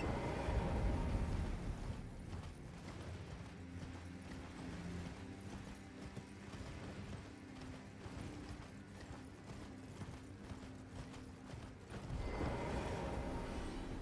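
A horse gallops with quick hoofbeats over snowy ground.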